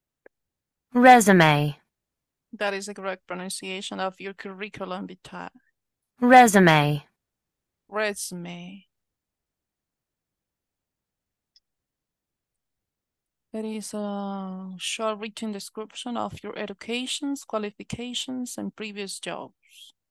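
An adult speaks over an online call.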